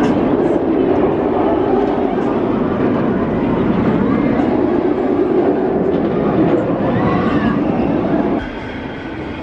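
A roller coaster train roars loudly along its track overhead.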